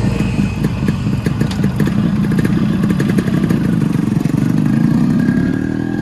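A motorcycle engine idles with a steady thumping rumble.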